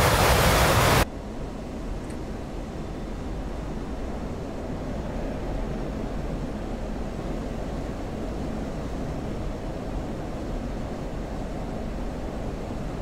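A jet engine rumbles low and muffled, as if heard from inside a cockpit.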